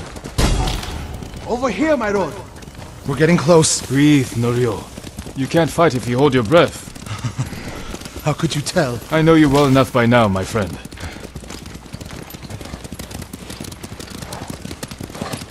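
Horse hooves pound steadily on snow at a gallop.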